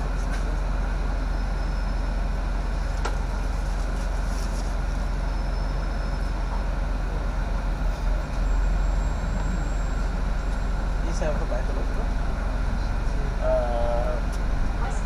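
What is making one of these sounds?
A bus engine rumbles steadily while driving along a city street.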